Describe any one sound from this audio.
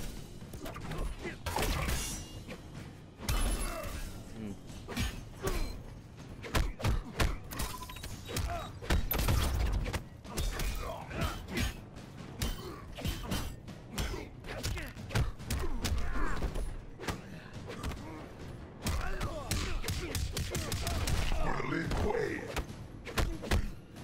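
Punches and kicks land with heavy thuds and smacks in a fighting game.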